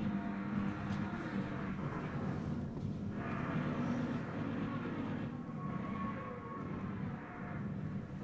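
Dancers' feet thud on a wooden stage.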